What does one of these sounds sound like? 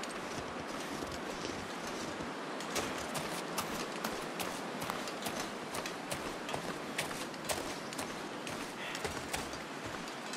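Footsteps crunch steadily through deep snow.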